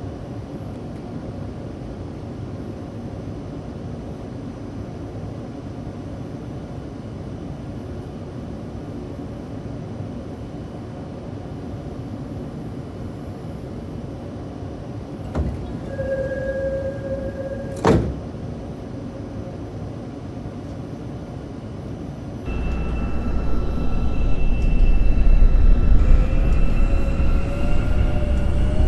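A train rumbles steadily along the rails, growing louder near the end.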